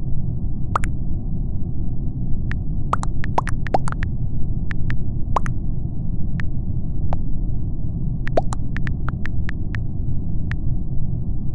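Keyboard keys click rapidly in quick bursts.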